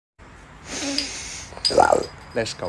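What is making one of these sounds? A young man sniffs loudly at a bottle.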